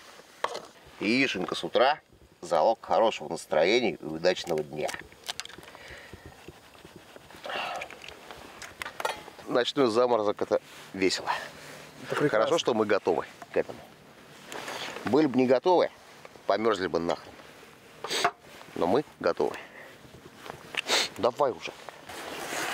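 A middle-aged man talks calmly and close by, outdoors.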